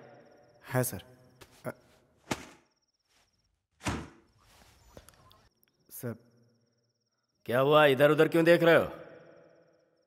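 A man speaks in short, tense bursts nearby.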